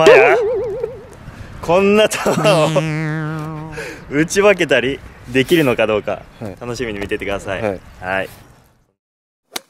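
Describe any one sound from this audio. A young man talks cheerfully and laughs close by.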